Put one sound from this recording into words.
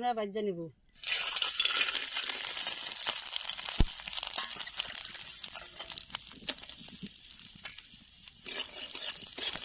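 Hot oil sizzles and crackles loudly in a pan.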